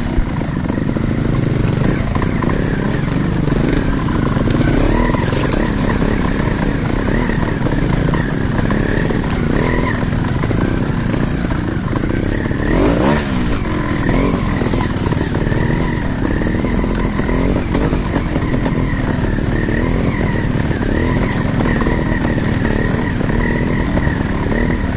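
A dirt bike engine revs and putters up close.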